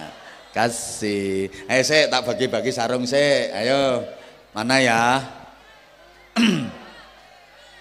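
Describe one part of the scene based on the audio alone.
A man speaks animatedly into a microphone over loudspeakers, with a ringing echo.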